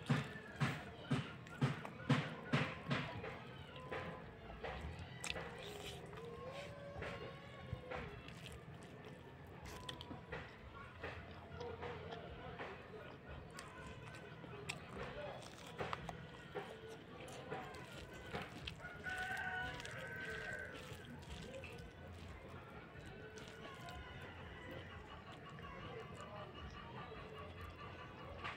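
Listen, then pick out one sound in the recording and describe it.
A woman chews and smacks her lips loudly, close up.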